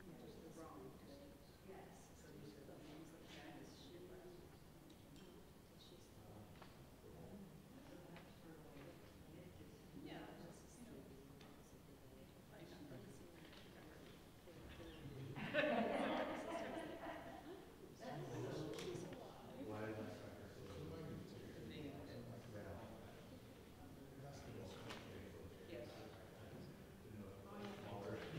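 An older woman speaks to an audience.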